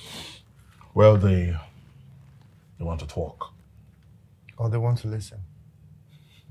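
A man speaks calmly in short phrases, close by.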